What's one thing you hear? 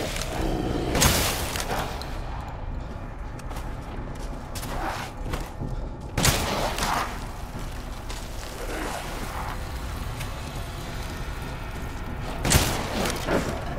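A shotgun fires loud, echoing blasts.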